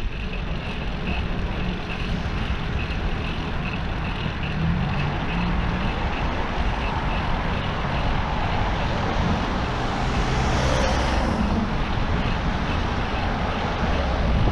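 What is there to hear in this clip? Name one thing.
A bicycle's tyres hum on the road.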